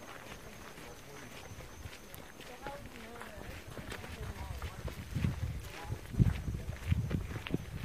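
Boots crunch and splash on wet gravel as several people walk.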